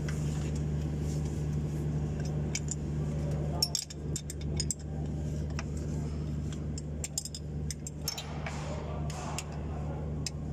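A hand turns an engine fan and pulley with light clicks and rattles.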